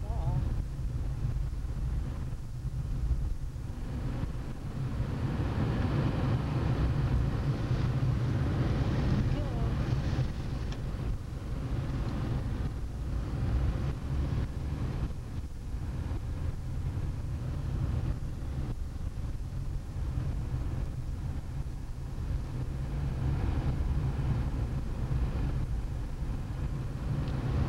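Tyres rumble and hiss over snowy, slushy road.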